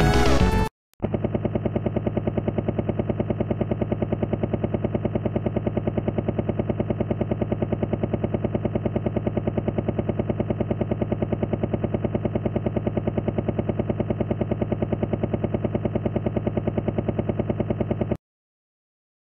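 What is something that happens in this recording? A helicopter's rotor thumps steadily and evenly.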